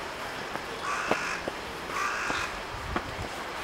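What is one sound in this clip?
A crow caws from a rooftop.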